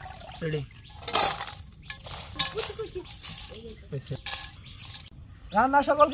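Rice pours and patters onto a metal plate.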